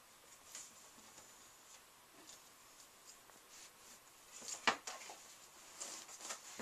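A wooden frame scrapes and knocks against a carpeted floor.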